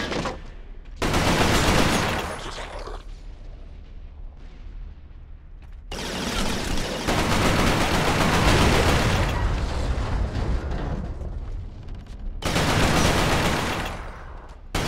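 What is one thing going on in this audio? A rifle fires loud bursts of rapid shots indoors.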